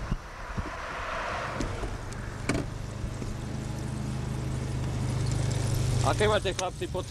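A car engine hums, heard from inside the car.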